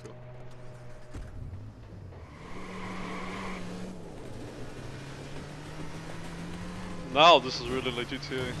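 A car engine hums steadily and revs as the car drives.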